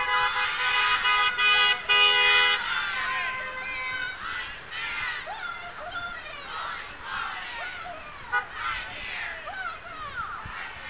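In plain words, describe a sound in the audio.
A crowd of men and women shouts and cheers outdoors at a distance.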